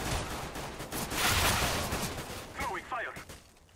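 Pistol shots ring out in quick bursts.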